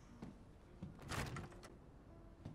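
A wooden door swings open with a creak.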